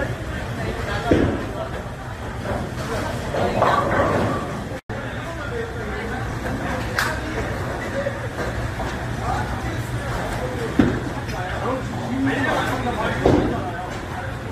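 A bowling ball rolls down a lane.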